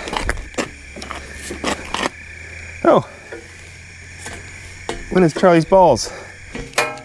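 Metal clanks and scrapes under a pry bar.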